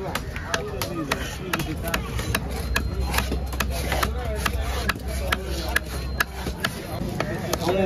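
A cleaver chops through fish on a wooden block with sharp, rapid knocks.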